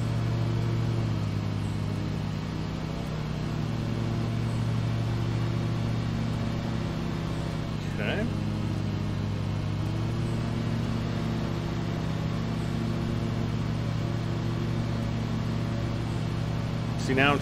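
Mower blades cut through tall grass.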